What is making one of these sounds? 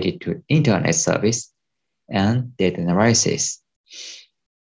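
A young man speaks calmly, heard through a microphone on an online call.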